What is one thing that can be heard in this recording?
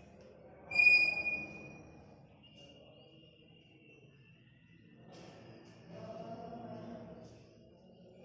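Chalk scratches and squeaks on a blackboard.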